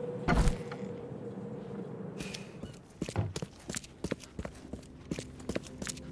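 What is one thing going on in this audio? Footsteps run on a tiled floor.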